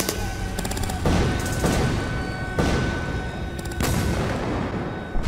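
Field guns fire with heavy booms.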